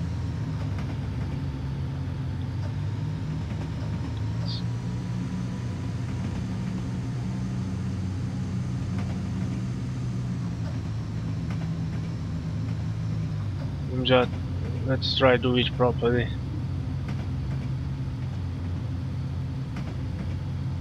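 A train engine hums steadily with a low drone.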